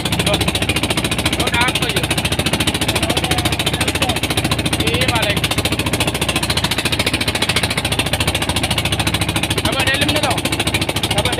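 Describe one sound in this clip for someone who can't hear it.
A boat engine chugs steadily and fast close by.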